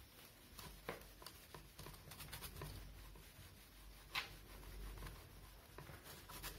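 A cloth rubs and squeaks across a whiteboard.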